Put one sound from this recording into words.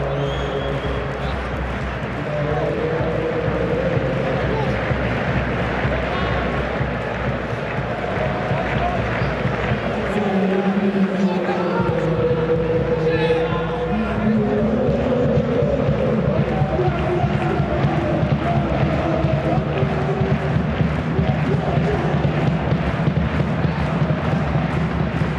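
A large stadium crowd chants and sings loudly throughout.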